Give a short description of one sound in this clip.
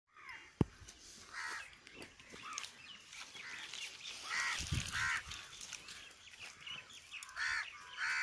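A hand rubs a leaf against a rock with a soft rustle.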